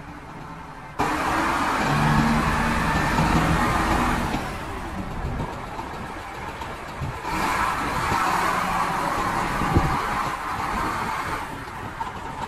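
A diesel engine revs up and roars louder.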